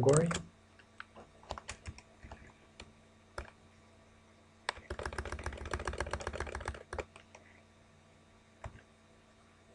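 Keys clatter on a keyboard in quick bursts of typing.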